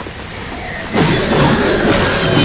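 Blades clash and strike loudly in a fight.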